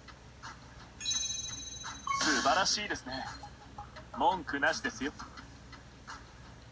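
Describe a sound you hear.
Game chimes and effects sound from a small speaker.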